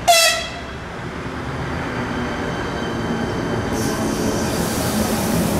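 Train wheels clatter and hiss on the rails.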